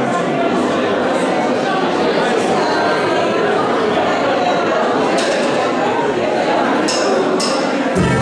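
Brass horns play a melody.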